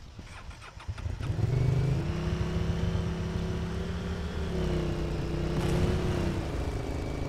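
A quad bike engine revs up and drones steadily as the bike drives off.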